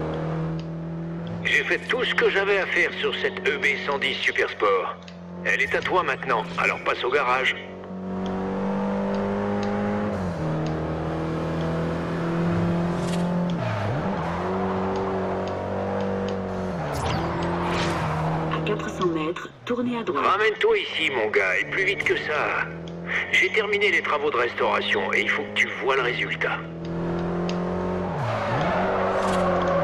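A car engine roars steadily and shifts gears.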